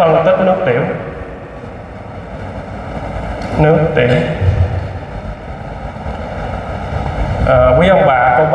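A man speaks through a microphone over loudspeakers in a large hall, with pauses between phrases.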